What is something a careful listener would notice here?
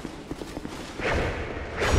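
A sword swings through the air with a whoosh.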